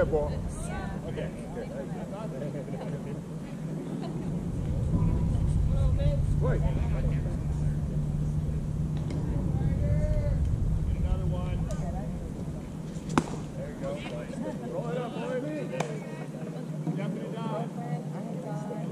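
Young men call out across an open field.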